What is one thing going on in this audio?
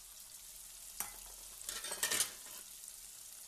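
Food drops into hot oil with a sharp burst of sizzling.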